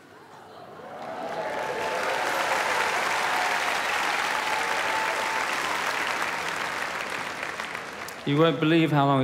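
An audience cheers and applauds loudly in a large hall.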